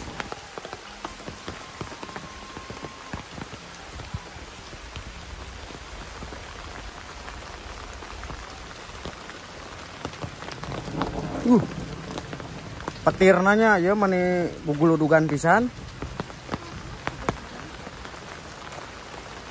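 Footsteps squelch on a wet dirt path.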